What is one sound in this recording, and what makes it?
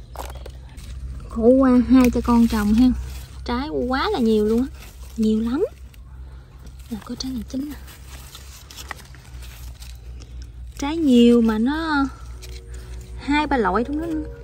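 Leaves rustle as a hand brushes through plants.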